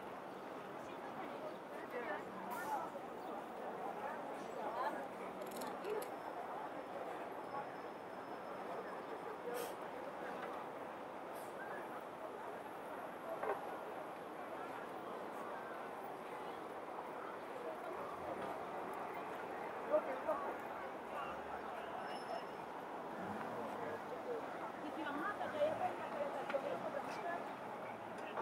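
A crowd of pedestrians chatters on a busy outdoor street.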